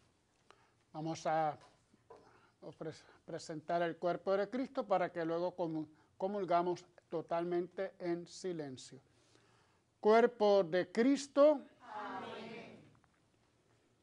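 An older man chants and speaks slowly into a microphone.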